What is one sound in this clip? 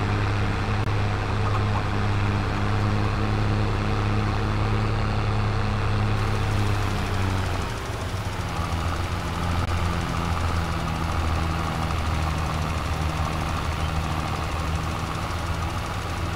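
A tractor engine hums steadily as it drives.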